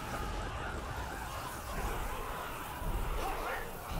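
Birds flap their wings loudly in a flurry.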